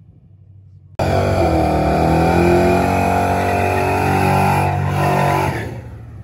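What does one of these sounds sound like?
A truck engine rumbles and revs loudly.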